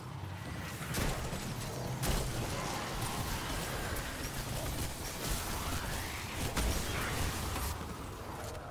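Guns fire in sharp bursts with loud blasts.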